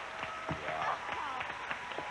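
A small crowd claps.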